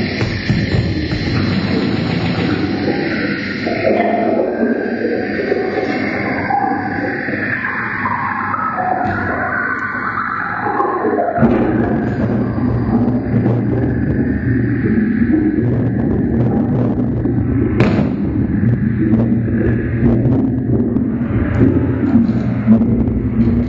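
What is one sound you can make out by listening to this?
Electronic synthesizer tones drone and warble steadily throughout.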